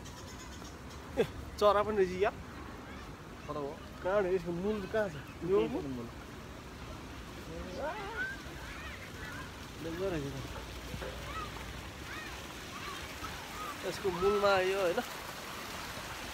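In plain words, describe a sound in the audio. A shallow stream trickles over stones.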